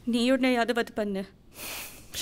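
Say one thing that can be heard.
A woman speaks softly and closely.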